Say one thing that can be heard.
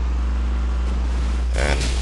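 Water splashes as a vehicle drives through it.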